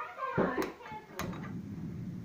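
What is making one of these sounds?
A piezo igniter on a gas camping stove clicks.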